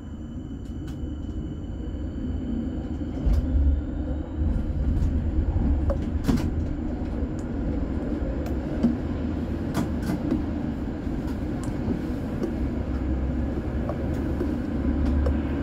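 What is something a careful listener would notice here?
A tram rumbles along rails and grows louder as it picks up speed.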